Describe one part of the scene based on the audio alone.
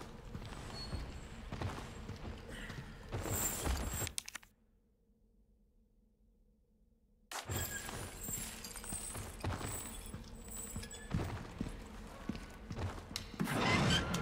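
Heavy footsteps crunch over a gritty stone floor.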